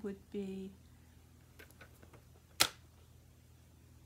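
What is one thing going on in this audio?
A paper trimmer blade clicks as it slides down.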